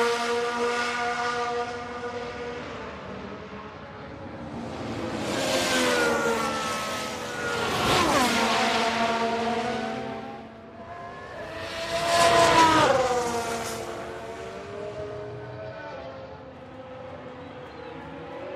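Racing car engines whine at high revs throughout.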